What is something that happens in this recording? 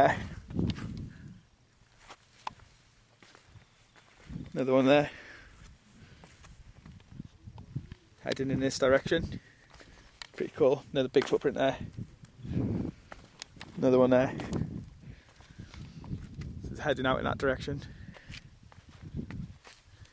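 Footsteps crunch and scrape on rock.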